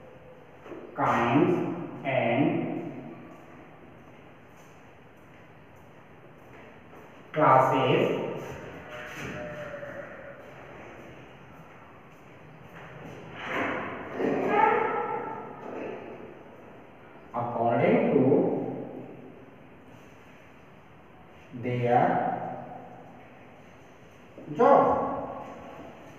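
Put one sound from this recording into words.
A man speaks calmly in short phrases, with pauses between.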